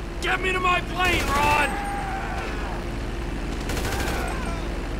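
A gun fires.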